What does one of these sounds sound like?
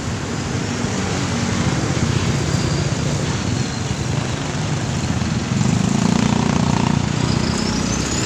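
Motorcycle engines idle and putter nearby in traffic.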